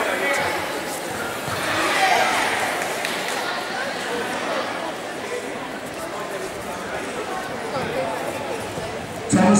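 Feet thud and shuffle on mats.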